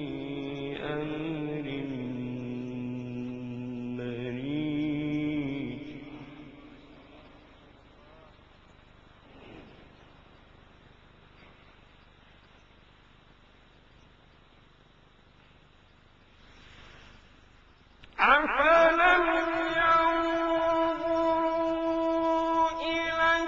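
A man chants in long, drawn-out melodic phrases through a microphone, pausing and then resuming loudly.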